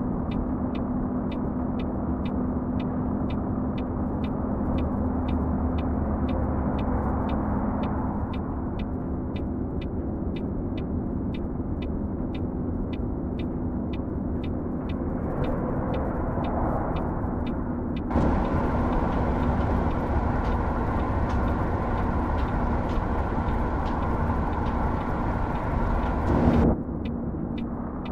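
A turn signal ticks in an even rhythm.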